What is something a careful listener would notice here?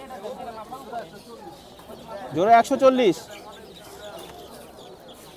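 Chickens cheep and cluck close by.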